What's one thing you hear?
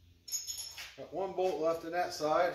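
An older man speaks calmly close by.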